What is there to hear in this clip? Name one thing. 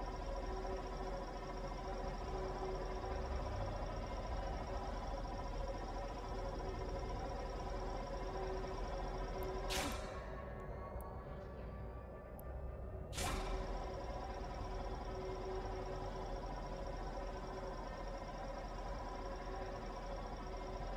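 A laser beam hums steadily, cutting out briefly and then starting again with a sharp burst.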